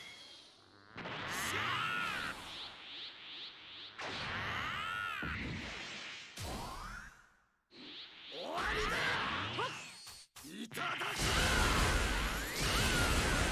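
A young man's animated voice yells with effort.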